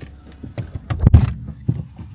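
A car door thuds shut.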